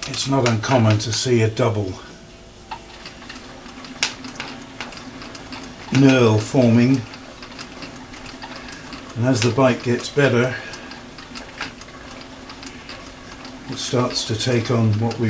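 Metal parts click and tick as a machine runs.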